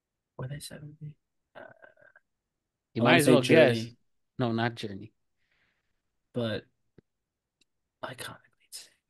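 A young man talks calmly through an online call.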